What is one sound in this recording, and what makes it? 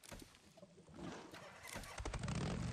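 A motorcycle engine starts and rumbles.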